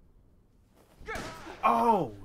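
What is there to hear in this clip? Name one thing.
A gunshot blasts at close range.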